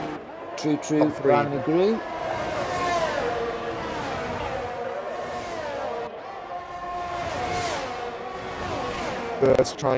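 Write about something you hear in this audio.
Racing car engines whine at high revs, dropping in pitch with each gear change.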